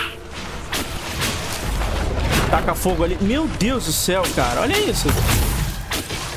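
Magic spells whoosh and crackle in a battle.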